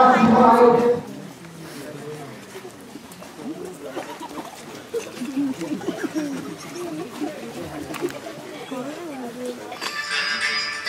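Children talk quietly among themselves.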